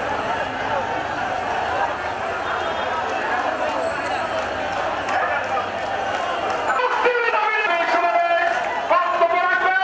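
A large outdoor crowd murmurs and shouts.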